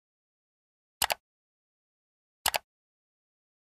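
A mouse clicks twice.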